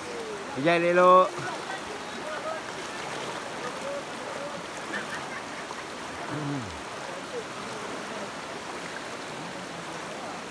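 A shallow river rushes and splashes steadily.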